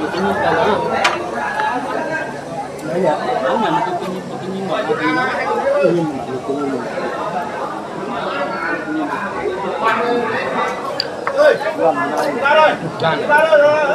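Chopsticks and spoons clink against bowls.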